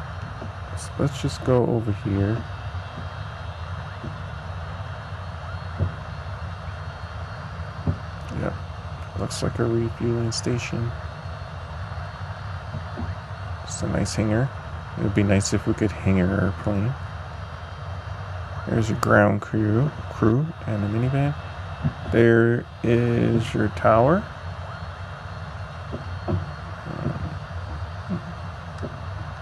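A small propeller engine hums steadily as an aircraft taxis.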